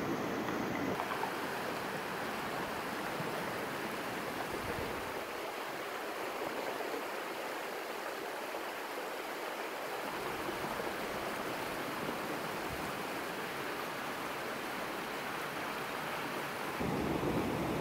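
Muddy floodwater rushes and gushes loudly through a narrow street.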